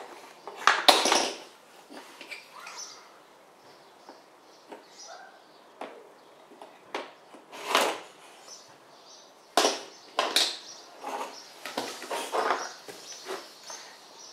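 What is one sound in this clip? Plastic and wooden toy pieces click and clack together.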